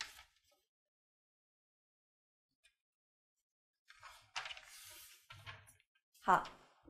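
A woman speaks calmly and clearly, as if teaching, close by.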